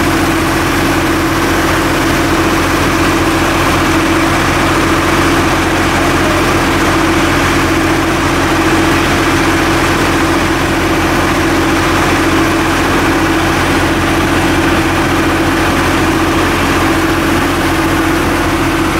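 A fire engine's motor runs with a loud, steady drone close by.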